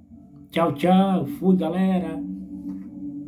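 A young man speaks loudly and with animation close to a microphone.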